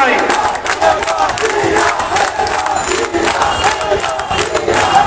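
A large crowd of men chants and shouts loudly outdoors.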